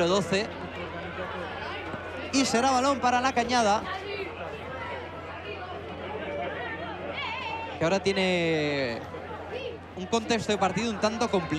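Young boys shout and call out to each other on an open outdoor pitch.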